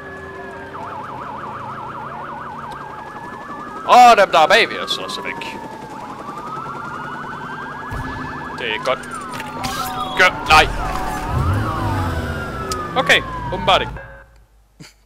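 Police sirens wail and yelp close by.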